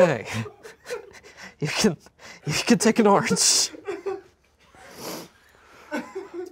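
A second young man groans and laughs.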